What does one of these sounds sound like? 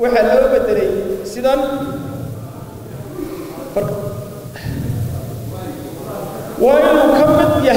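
A man speaks forcefully into a microphone, heard through loudspeakers in a large echoing hall.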